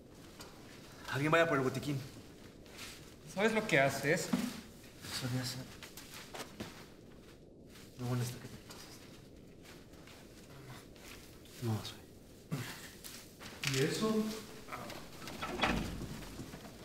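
A young man speaks urgently up close, in short bursts.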